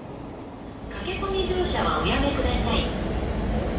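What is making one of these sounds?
A train rumbles loudly along the tracks nearby.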